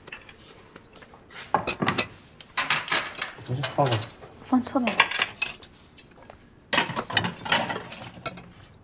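Dishes clink and clatter.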